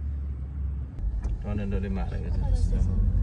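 A car drives along a wet road with a low rumble.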